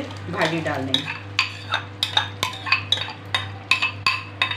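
A spoon scrapes and taps against a bowl's rim.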